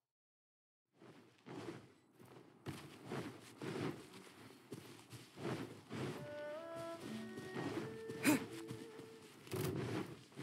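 Footsteps patter quickly over grass and stone.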